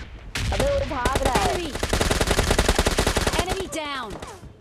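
A rifle fires rapid shots in quick bursts.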